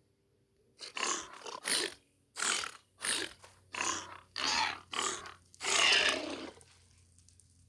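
Sword blows strike a creature in quick succession.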